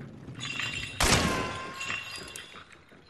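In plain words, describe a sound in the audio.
A gunshot rings out with a loud echoing blast.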